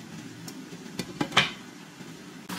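A glass lid clinks onto a metal frying pan.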